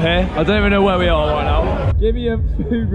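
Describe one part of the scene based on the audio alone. A man talks loudly and animatedly close up.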